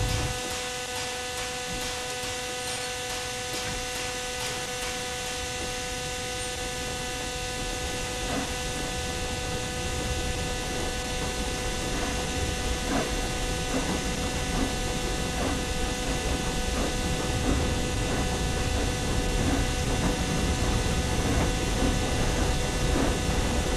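Steam hisses steadily.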